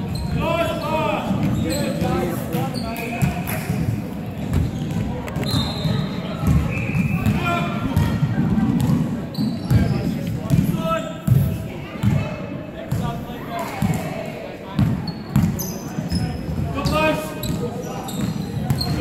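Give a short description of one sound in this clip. Men call out to each other across a large echoing hall.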